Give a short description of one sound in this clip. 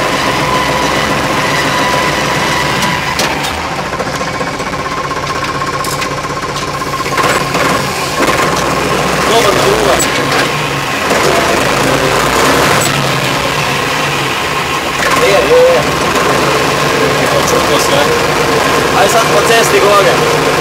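A tractor engine hums steadily up close.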